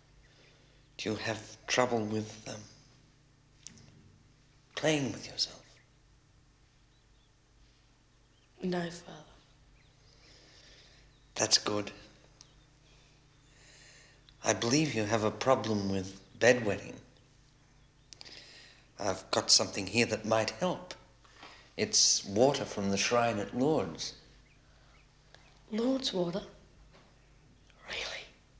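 An elderly man speaks calmly and slowly.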